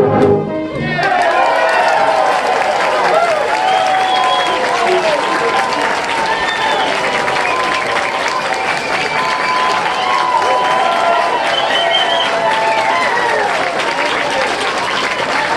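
A brass band of tubas plays a cheerful tune outdoors.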